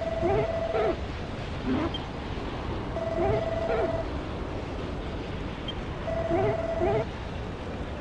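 Short electronic chirping blips sound in quick bursts, like a character babbling.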